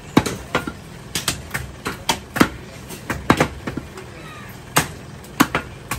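A cleaver chops through raw beef on a wooden block.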